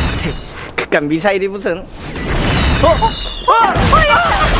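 A young man exclaims loudly in surprise.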